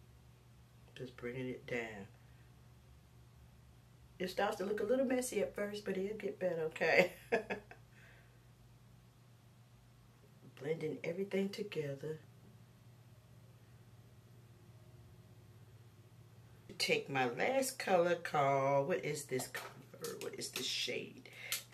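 A woman talks calmly and closely into a microphone, in short bursts with pauses.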